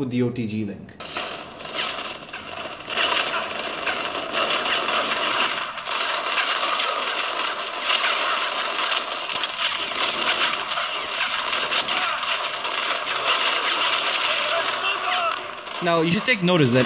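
Gunshots and game effects play through a small phone speaker.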